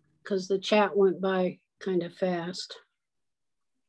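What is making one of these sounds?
An elderly woman speaks calmly and close to a microphone, as if over an online call.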